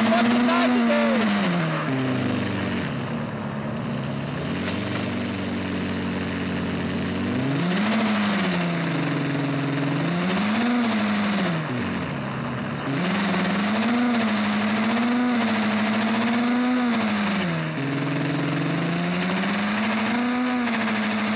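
A car engine revs up and down as it shifts through gears.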